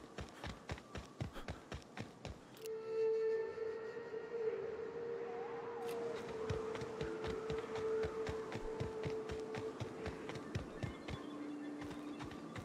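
Footsteps tread steadily along a path.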